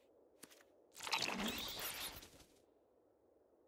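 A computer game plays a short swooshing sound effect.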